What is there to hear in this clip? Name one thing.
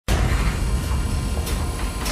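A metal roller shutter rattles as it rolls up.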